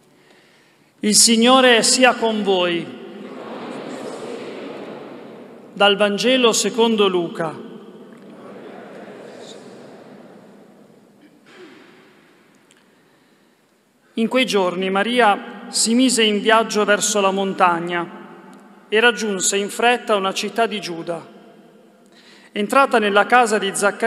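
A young man speaks slowly and solemnly into a microphone in a large echoing hall.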